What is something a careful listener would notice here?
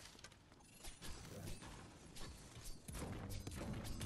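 A pickaxe strikes a stone wall with sharp, ringing blows.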